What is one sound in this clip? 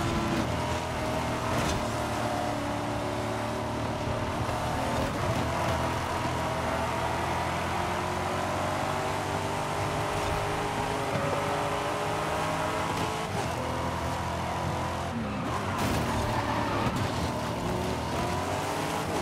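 Tyres rumble and scrape over the road.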